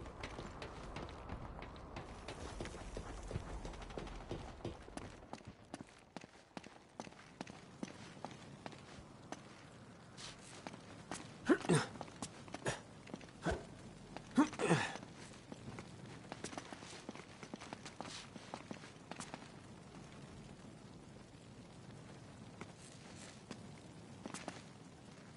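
A man's footsteps tap on a hard floor.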